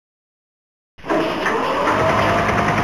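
A metal roller shutter rattles open.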